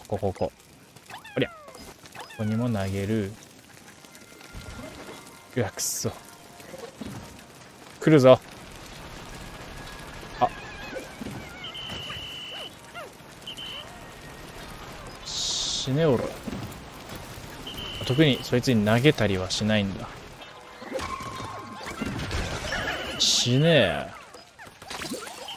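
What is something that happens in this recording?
Playful video game sound effects chirp, pop and chime.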